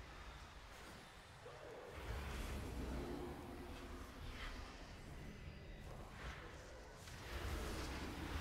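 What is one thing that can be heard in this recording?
Spell effects whoosh and crackle in a game battle.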